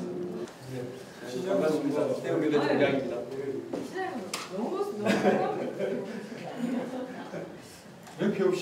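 Several men and women chat quietly nearby.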